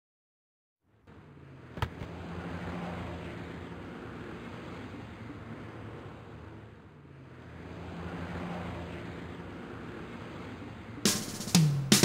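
Cars drive by on a city street.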